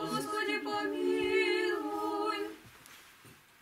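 Several women sing a chant together close by.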